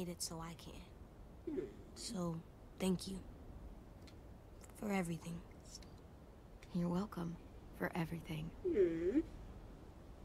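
A young woman speaks quietly close to a microphone.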